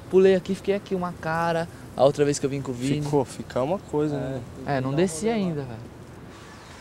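A young man and a youth talk with each other close by, outdoors.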